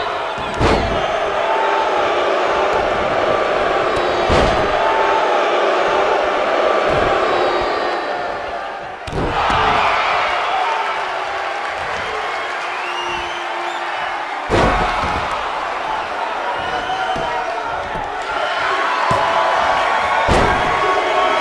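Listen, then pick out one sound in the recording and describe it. Heavy thuds boom as wrestlers slam onto the mat.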